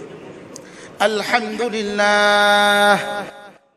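A middle-aged man chants loudly through a microphone, holding a long note.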